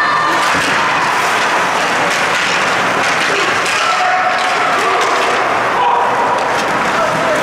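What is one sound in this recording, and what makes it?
A crowd of spectators murmurs and calls out in a large echoing rink.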